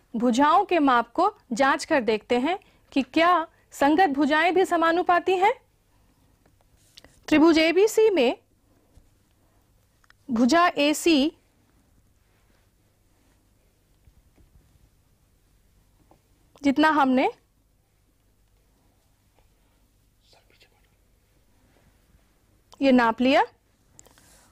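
A woman speaks calmly and clearly into a microphone, as if teaching.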